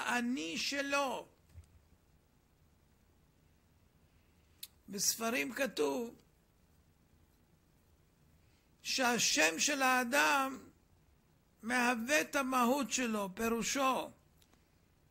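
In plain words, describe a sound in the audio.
An elderly man speaks slowly and earnestly into a close microphone, with long pauses.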